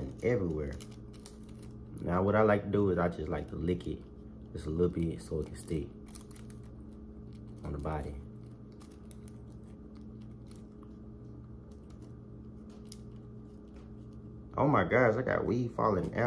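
Paper rustles and crinkles in hands.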